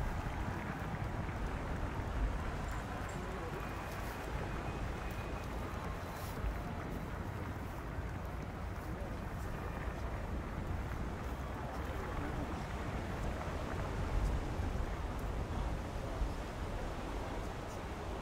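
Horses' hooves thud on soft turf.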